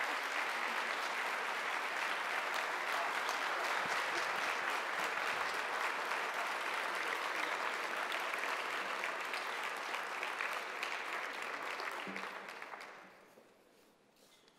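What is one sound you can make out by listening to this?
An audience applauds steadily in a large hall, then the clapping dies away.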